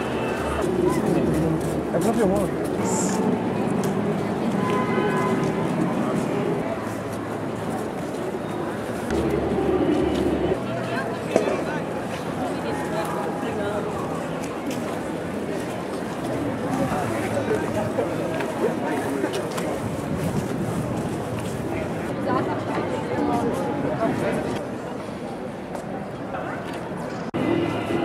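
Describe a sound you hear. A crowd of men and women murmur and talk nearby outdoors.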